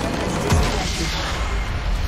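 A loud game blast rings out.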